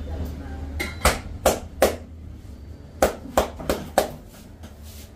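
Hands pat and slap firmly on a man's back and shoulders.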